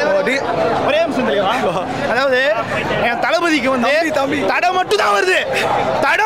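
A young man speaks animatedly and loudly into a microphone close by.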